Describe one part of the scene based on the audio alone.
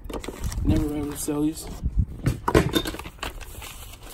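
Items knock and scrape against cardboard.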